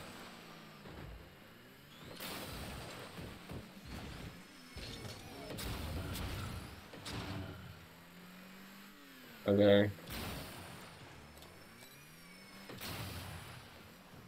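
Car engines hum and whine as they boost around.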